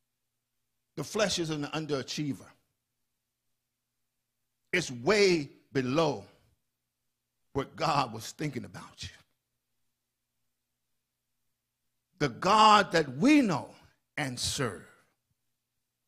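An older man speaks with animation into a microphone, in short bursts with pauses.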